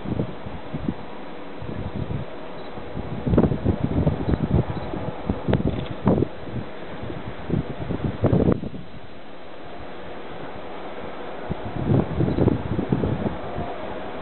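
Wind gusts blow across open ground outdoors.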